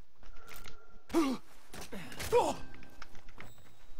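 Fists land with heavy thuds in a brief scuffle.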